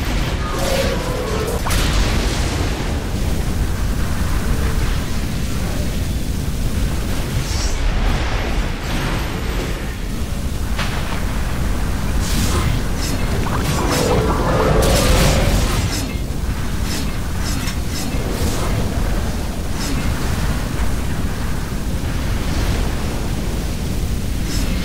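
Game spells crackle and blast in a fight.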